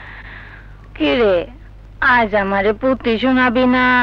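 A woman speaks in a loud, drawn-out, emotional voice close by.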